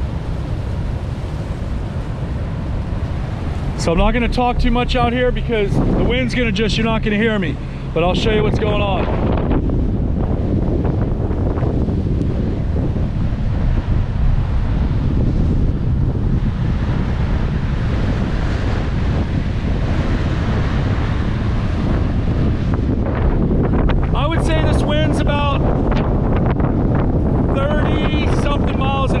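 Strong wind roars and buffets the microphone outdoors.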